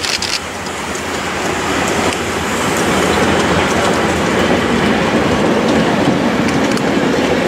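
Train carriages rumble and clatter over the rails, growing louder.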